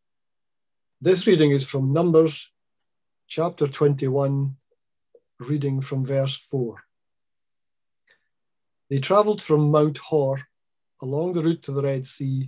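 An elderly man reads out calmly, close to a microphone, in short phrases.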